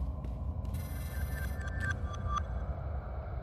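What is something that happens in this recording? A bright chime of rising tones rings out.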